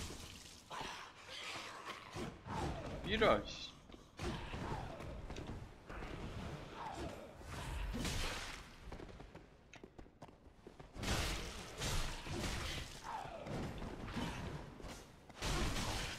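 A heavy hammer slams down with deep thudding blows.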